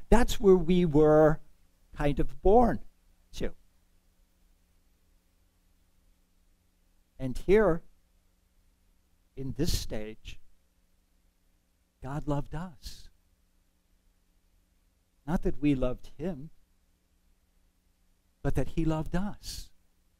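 A middle-aged man speaks calmly through a microphone, pausing often.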